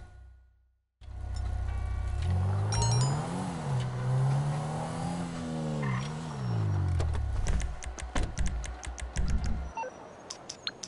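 A car engine hums and revs, rising and falling in pitch.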